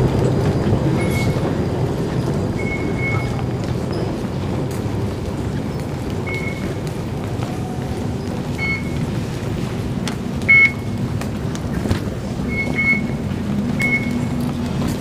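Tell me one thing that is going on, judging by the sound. Fare gates beep with short electronic tones.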